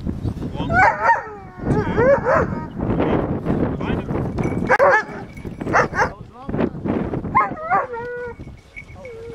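A dog yelps and barks excitedly.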